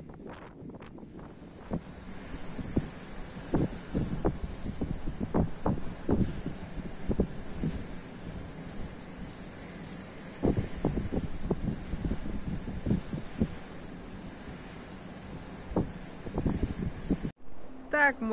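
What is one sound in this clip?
Waves crash against rocks.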